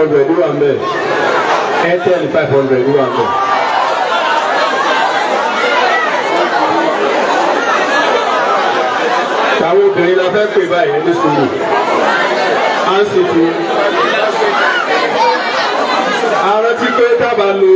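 A man speaks with animation into a microphone, heard through loudspeakers in an echoing room.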